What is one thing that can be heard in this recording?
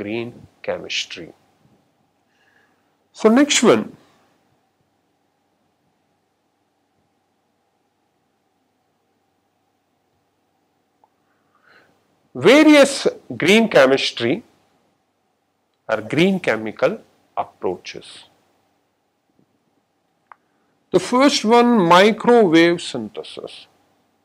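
A man lectures calmly into a close microphone, in short bursts with pauses.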